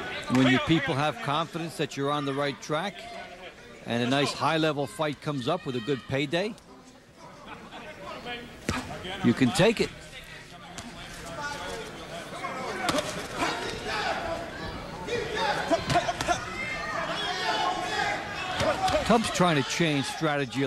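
A large crowd murmurs and cheers in a big hall.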